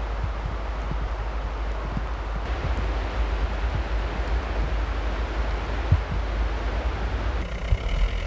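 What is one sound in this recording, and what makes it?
Wind blows and rumbles steadily outdoors.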